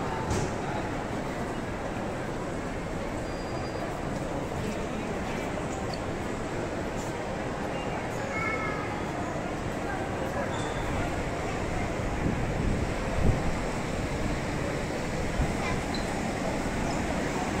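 A crowd murmurs and chatters steadily in a large echoing indoor space.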